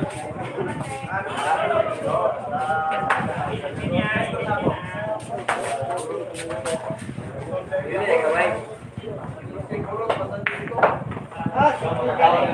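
Several men talk and call out nearby in a lively way.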